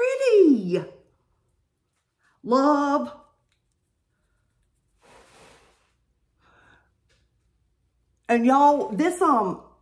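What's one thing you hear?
A woman talks with animation close to a microphone, in short bursts.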